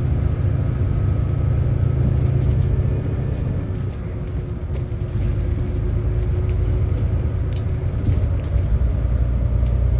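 A bus engine rumbles low and steady while driving.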